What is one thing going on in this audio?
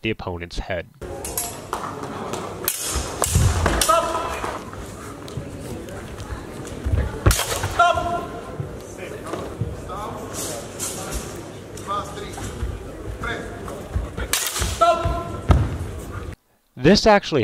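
A crowd murmurs and calls out in a large echoing hall.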